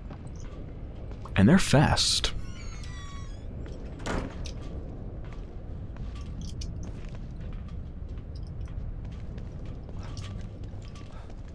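Footsteps crunch softly on gravel.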